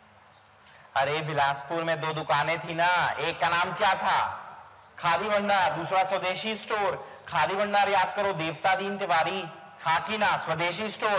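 A man lectures loudly and with animation, close to a microphone.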